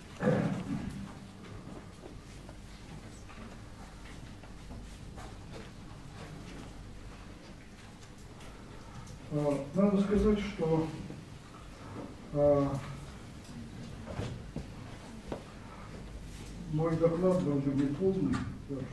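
An elderly man speaks calmly in a room, pausing between phrases.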